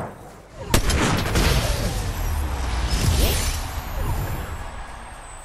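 A triumphant video game victory fanfare plays loudly.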